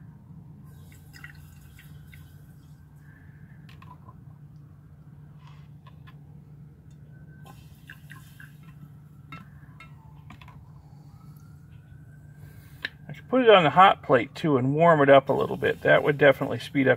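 Liquid fizzes and crackles softly in a glass container.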